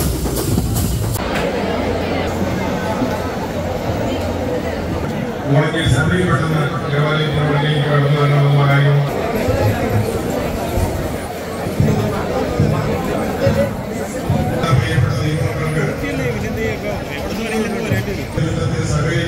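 A large crowd murmurs and chatters all around.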